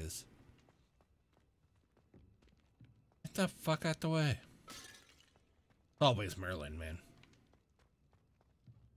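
Footsteps tap on stone floor and steps.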